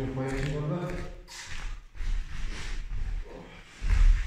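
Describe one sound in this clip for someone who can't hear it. Bare feet thud softly on a padded mat.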